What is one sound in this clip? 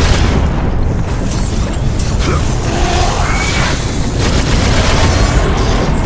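Blades slash and clang against enemies in quick succession.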